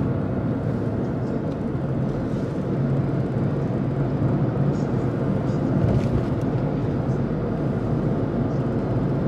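Tyres roll along a road with a steady low rumble.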